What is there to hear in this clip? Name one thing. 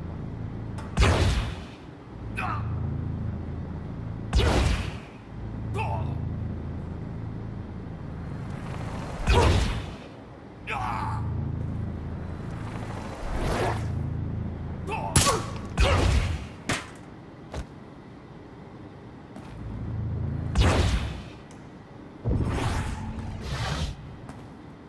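Sharp blasts of force burst out again and again.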